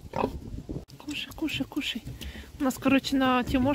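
A piglet squeals in short, high cries.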